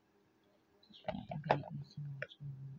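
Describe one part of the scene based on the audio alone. Something plastic rustles and knocks as it is handled close by.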